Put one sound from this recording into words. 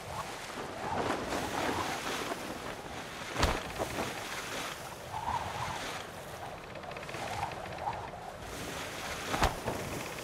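Wind blows over open water.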